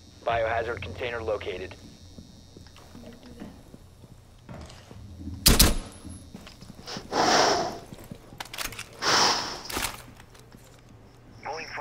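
Footsteps move quickly across a hard floor.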